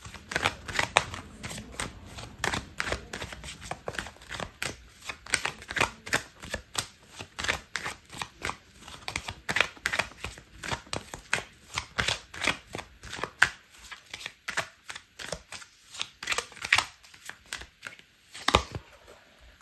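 Playing cards riffle and flick rapidly as a deck is shuffled by hand.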